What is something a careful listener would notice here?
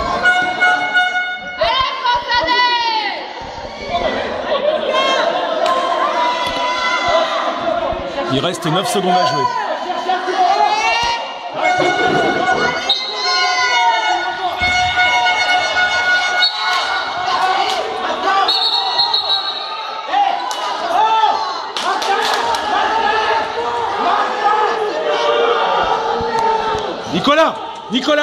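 Young men shout and call out to each other in a large echoing hall.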